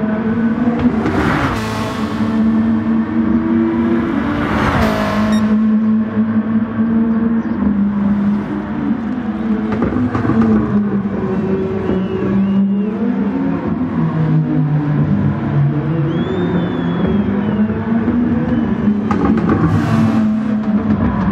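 Race cars whoosh past close by.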